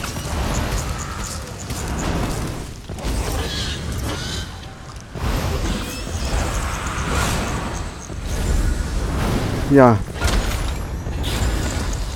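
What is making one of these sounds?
Magic spells crackle and blast in bursts.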